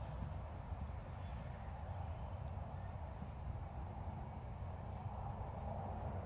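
Horse hooves thud softly on grass as horses trot.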